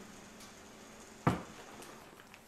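A cardboard box thuds down onto a wooden counter.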